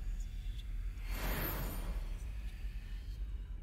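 A magical shimmer rings out and fades.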